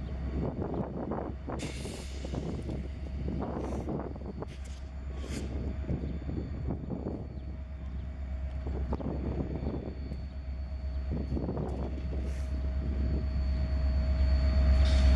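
Train wheels clank and squeal on the rails.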